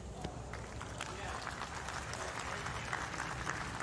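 A crowd claps and cheers.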